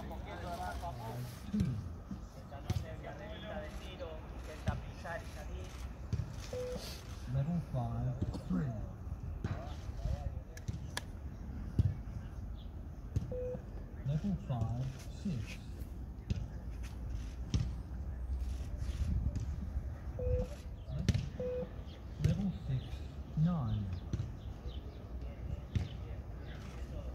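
Many feet thud softly on grass as a group jogs.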